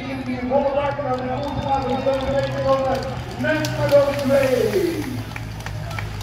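Spectators cheer and shout along the roadside.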